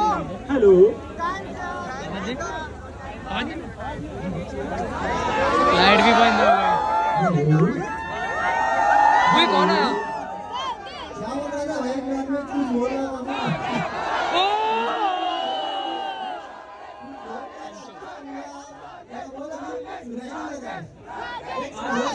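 A young man sings loudly into a microphone through loudspeakers.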